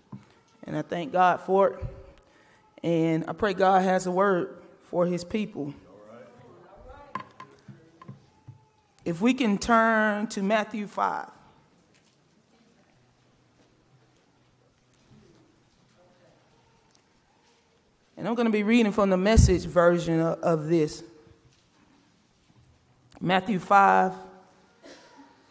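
A woman speaks into a microphone in bursts, with pauses between phrases, in a room with a slight echo.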